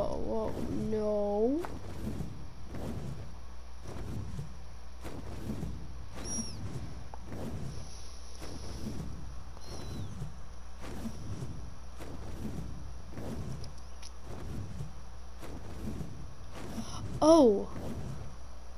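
A large creature lets out a shrill, wavering screech.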